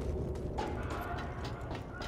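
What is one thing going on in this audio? Footsteps ring on a metal walkway.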